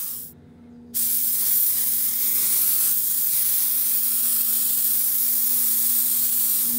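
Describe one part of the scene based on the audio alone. A spray gun hisses loudly, blowing a steady jet of air close by.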